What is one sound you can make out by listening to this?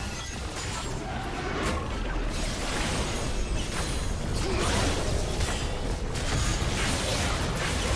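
Magical spell effects burst and whoosh in a video game battle.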